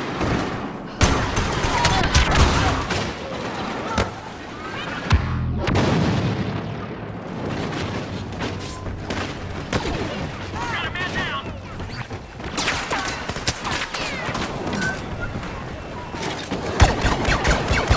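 A blaster rifle fires in rapid bursts.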